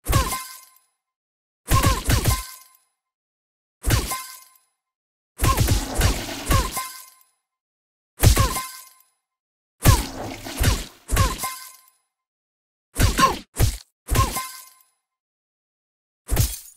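Punchy cartoon smacking sounds hit again and again with short ringing tails.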